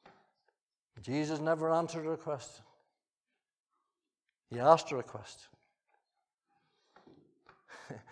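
An elderly man speaks slowly and deliberately through a microphone in a large room.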